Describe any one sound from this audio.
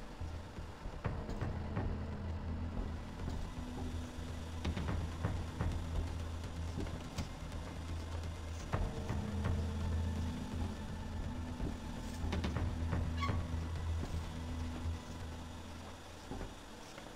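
A low electric machine hum drones steadily.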